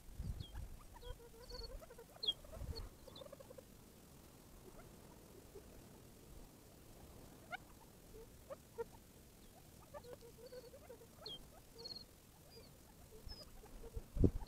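Quail cluck and chirp softly.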